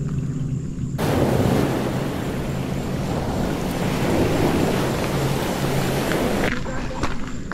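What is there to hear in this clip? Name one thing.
A waterfall rushes and splashes loudly.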